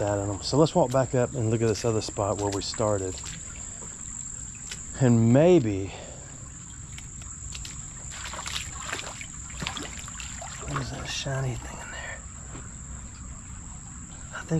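Water in a shallow stream flows and ripples gently.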